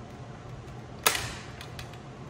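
A computer monitor thuds down onto a wooden table.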